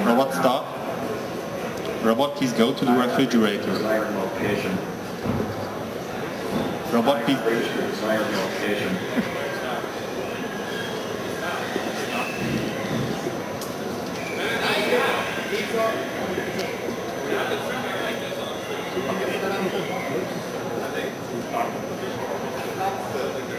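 A young man speaks into a headset microphone, pausing between short phrases.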